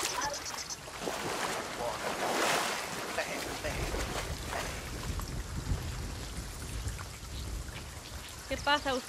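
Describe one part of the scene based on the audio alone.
Waves wash gently onto a sandy shore.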